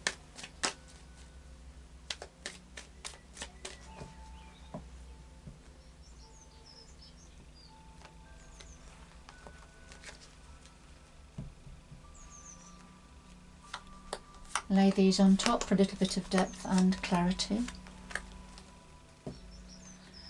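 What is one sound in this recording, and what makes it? Cards softly tap and slide on a cloth-covered table.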